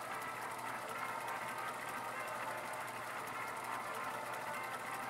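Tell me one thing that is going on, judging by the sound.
A mechanical reel whirs and ticks steadily.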